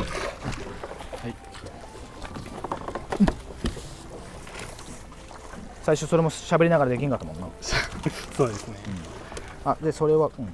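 A rope rubs and scrapes against a boat's hull.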